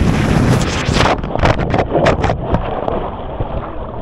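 Water splashes loudly up close.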